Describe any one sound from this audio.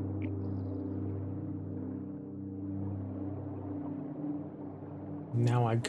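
A deep, steady electronic hum drones.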